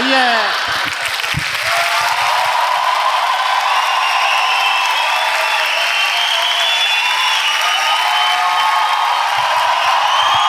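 Hands clap in steady applause.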